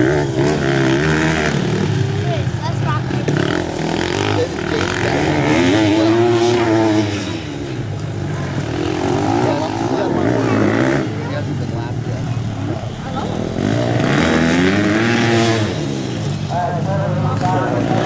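A small dirt bike engine whines loudly, revving up and down as it races close by.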